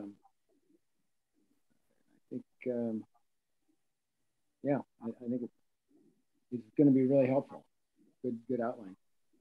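An older man speaks calmly over an online call, pausing between phrases.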